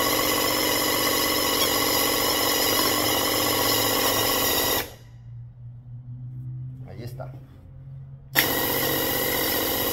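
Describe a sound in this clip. A sprayer's motor hums steadily.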